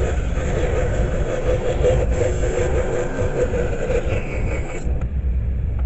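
A small power tool whirs steadily at close range, then stops abruptly.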